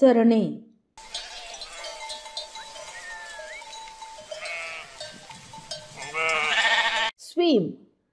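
A flock of sheep bleats outdoors.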